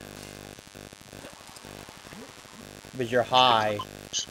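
A rope creaks and zips as a climber slides down it.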